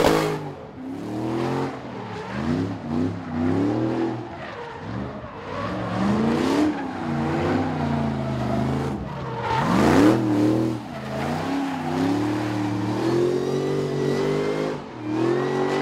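A car engine revs hard, rising and falling in pitch again and again.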